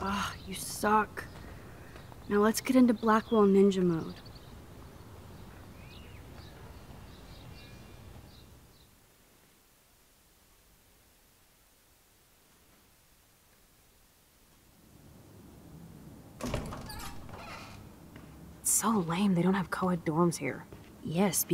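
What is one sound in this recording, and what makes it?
A young woman speaks casually, close up.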